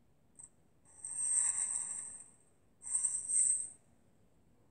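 A game chest opens with a bright magical chime.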